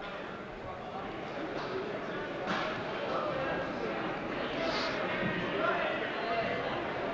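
Wrestlers' shoes squeak and thud on a mat.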